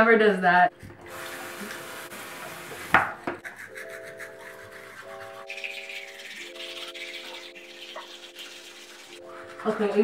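Toothbrushes scrub against teeth.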